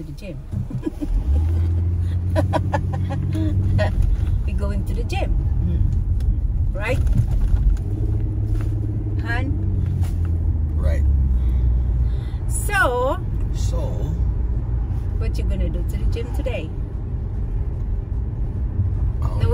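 A car engine hums steadily with road noise.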